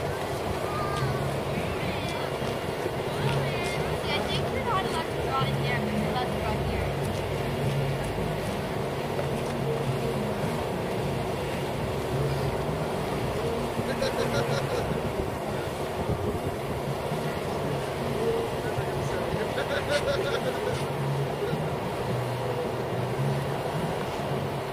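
Wind blows steadily across an open outdoor space.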